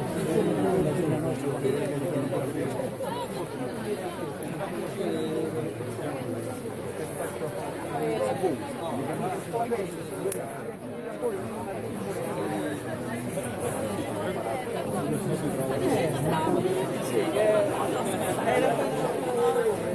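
Footsteps of many people shuffle along a road.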